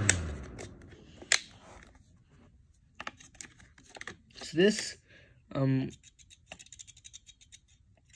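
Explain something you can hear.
A small plastic fan knocks and rattles as it is handled.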